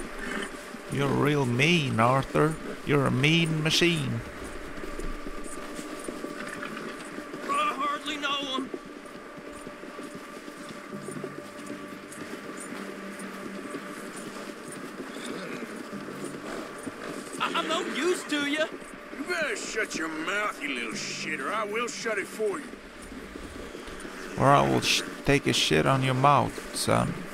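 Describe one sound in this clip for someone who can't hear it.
A horse trots through crunching snow.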